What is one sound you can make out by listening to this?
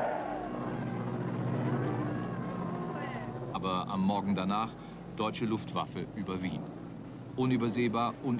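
Aircraft engines drone steadily overhead.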